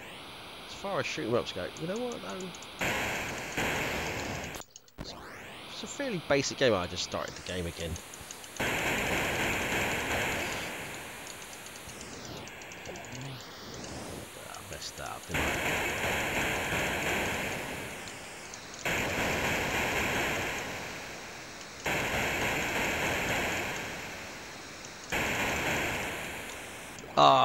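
Chiptune game music plays, bright and bouncy.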